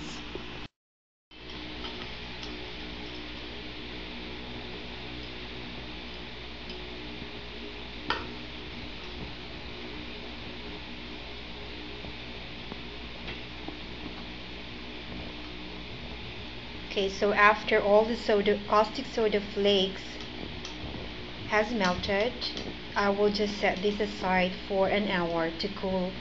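A stick stirs liquid in a glass, softly clinking against the side.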